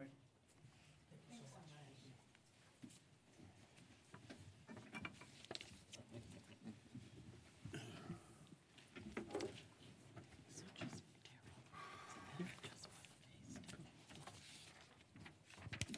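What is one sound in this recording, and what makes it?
People murmur and chatter in the room.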